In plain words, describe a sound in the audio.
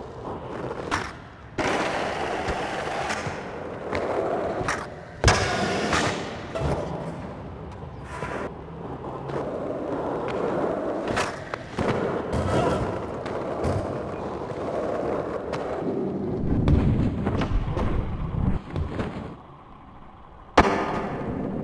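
A skateboard clacks sharply as it lands tricks.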